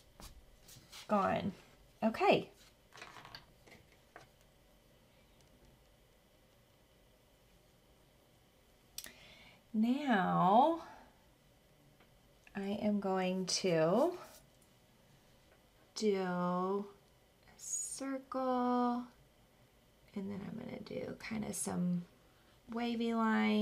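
A woman speaks calmly and warmly into a close microphone.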